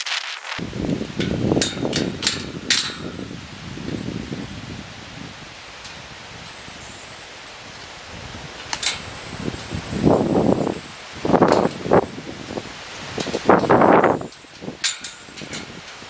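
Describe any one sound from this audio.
A metal gate latch clanks and rattles.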